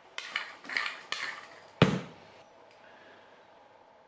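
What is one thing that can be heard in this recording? A metal tool knocks sharply against metal.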